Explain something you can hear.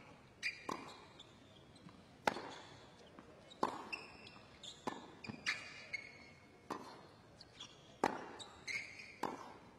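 Tennis balls are struck hard with rackets in a steady back-and-forth rally.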